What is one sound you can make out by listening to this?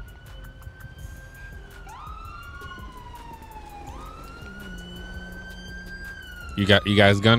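A siren wails nearby, rising and falling.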